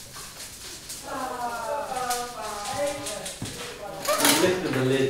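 A man and a woman talk calmly nearby.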